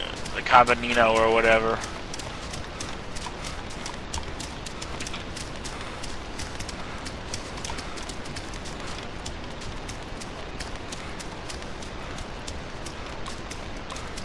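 Footsteps rustle steadily through grass.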